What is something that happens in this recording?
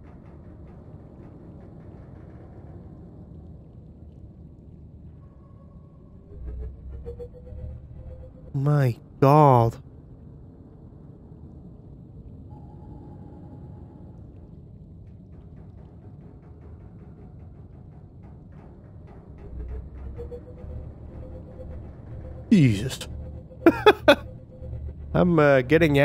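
Water rumbles and murmurs softly all around, heard from underwater.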